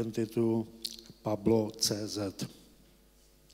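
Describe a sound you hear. A middle-aged man speaks through a microphone in an echoing hall.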